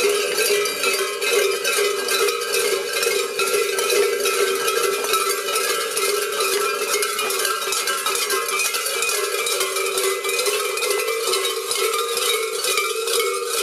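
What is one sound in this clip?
Many large bells clang and jangle in a steady rhythm.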